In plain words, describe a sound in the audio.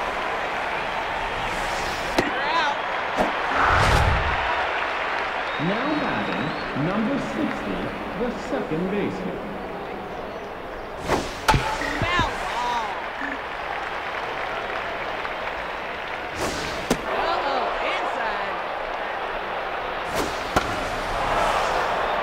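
A crowd murmurs and cheers steadily in a large stadium.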